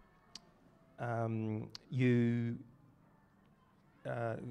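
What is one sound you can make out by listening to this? A man speaks with animation into a microphone, heard over loudspeakers in a hall.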